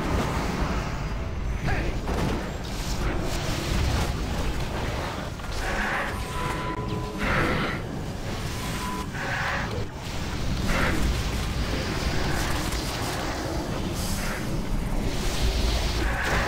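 Magic spells whoosh and burst in a noisy battle.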